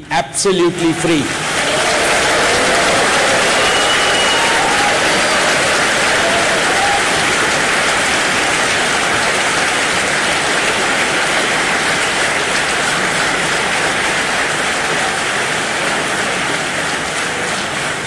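A large crowd applauds loudly and steadily.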